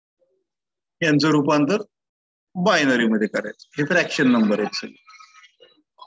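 A man speaks calmly and clearly through a microphone, like a teacher explaining.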